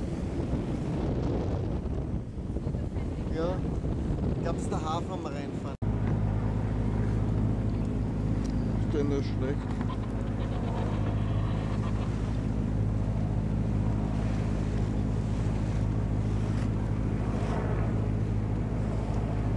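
Water splashes against a moving boat's hull.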